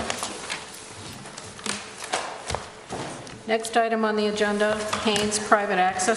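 Papers rustle and shuffle close by.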